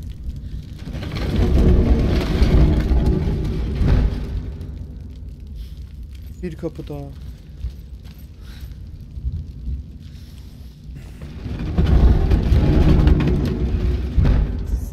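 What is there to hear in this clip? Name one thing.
Heavy wooden doors grind and rumble open.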